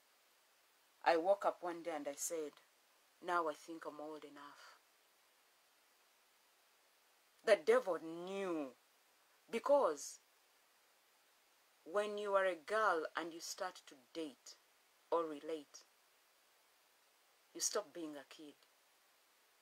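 A woman speaks calmly and close up, with pauses between phrases.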